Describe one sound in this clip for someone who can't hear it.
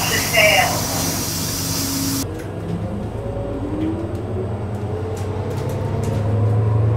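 A bus engine rumbles and whines as the bus drives along.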